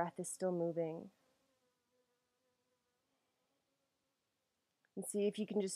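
A young woman speaks calmly and close to a microphone, pausing between phrases.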